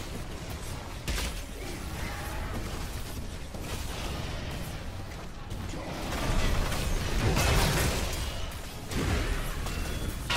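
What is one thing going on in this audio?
Magic blasts and impacts crackle and boom in a fierce battle.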